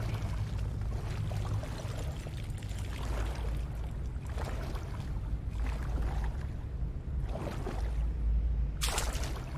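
Water splashes and sloshes as a swimmer paddles through it.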